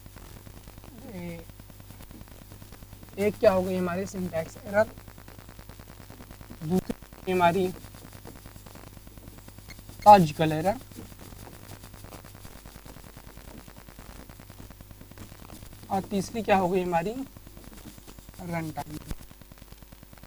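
A man speaks in short bursts, calmly explaining, close to a microphone.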